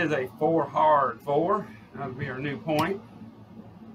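Chips click together.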